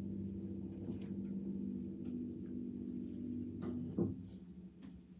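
A piano plays chords.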